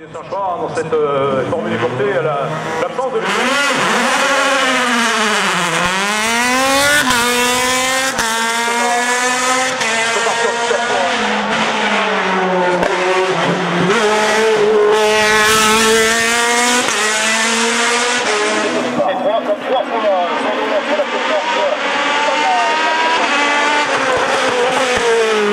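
A racing car engine screams at high revs, rising and dropping in pitch as it shifts gears and passes by.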